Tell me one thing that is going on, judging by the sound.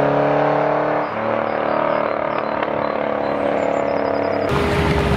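A sports car's engine pitch drops suddenly as it shifts gear.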